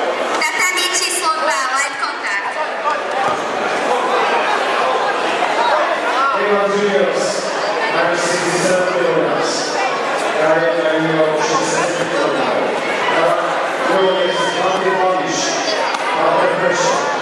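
Spectators shout and cheer in an echoing hall.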